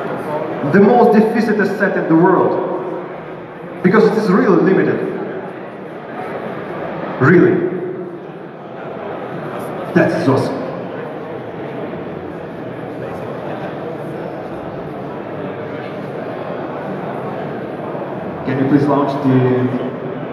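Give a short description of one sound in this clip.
A young man speaks with animation through a microphone in a large echoing hall.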